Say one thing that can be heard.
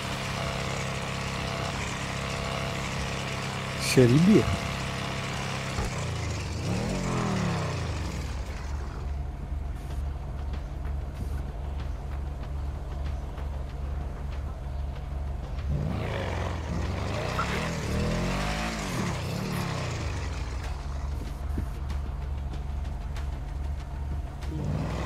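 A car engine hums and revs up and down.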